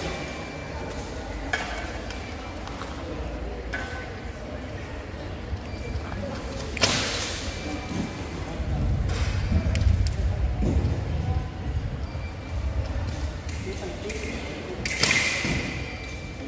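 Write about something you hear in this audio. An electronic scoring box beeps.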